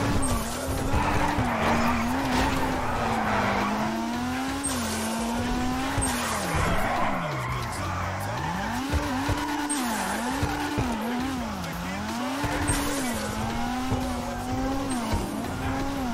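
Tyres screech and squeal on the road as a car drifts.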